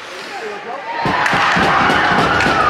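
A crowd cheers loudly in an echoing rink.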